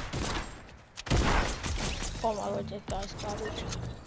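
A rocket explodes with a loud boom.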